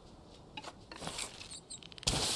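A pickaxe strikes rock.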